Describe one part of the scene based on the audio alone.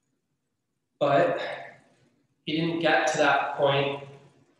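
A young man speaks calmly into a microphone in an echoing room.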